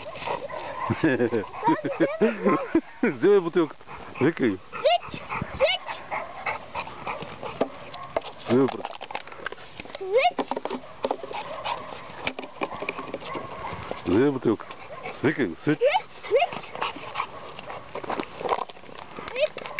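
A young boy shouts and calls out excitedly nearby.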